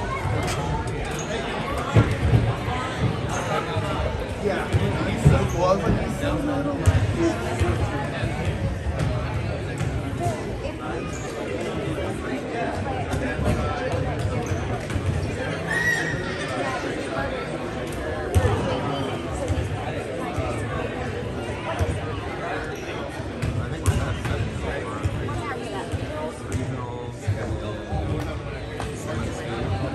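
A crowd of children and adults chatters in a large echoing gym.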